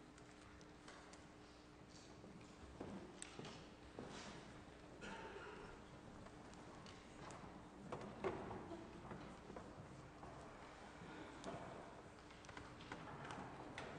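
A seated crowd rustles and murmurs quietly.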